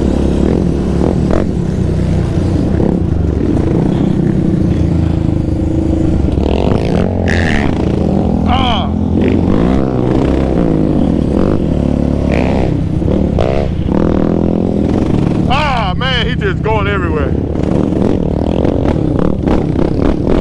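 An engine roars loudly and steadily close by.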